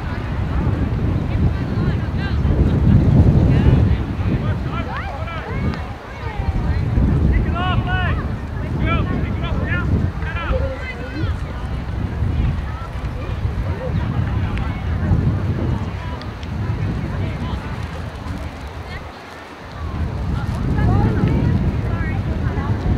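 Wind buffets loudly in gusts outdoors.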